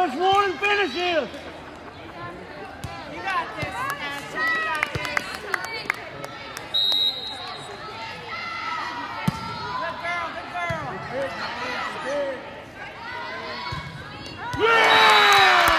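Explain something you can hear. Young girls call out and chatter in a large echoing hall.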